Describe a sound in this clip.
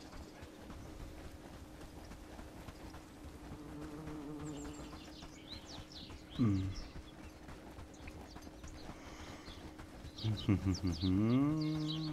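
Footsteps swish through grass and over a dirt path.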